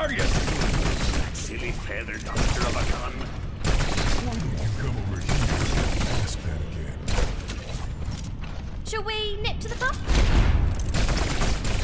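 Energy pistols fire in rapid bursts.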